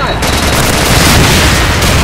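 Gunfire rattles from a video game.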